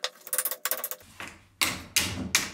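A hammer taps on metal with sharp knocks.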